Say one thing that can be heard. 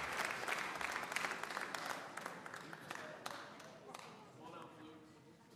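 An audience applauds loudly in a large hall, then the applause fades.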